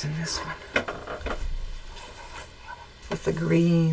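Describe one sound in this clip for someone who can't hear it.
A bolt of fabric thumps down onto a table.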